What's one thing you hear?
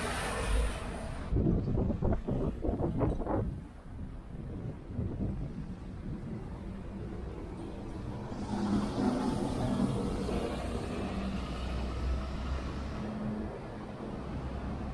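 Traffic hums steadily on a street outdoors.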